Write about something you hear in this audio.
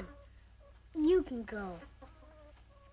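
A young boy speaks in a trembling, upset voice.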